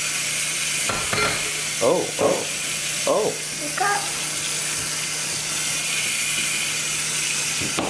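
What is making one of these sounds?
Water runs from a tap into a metal sink.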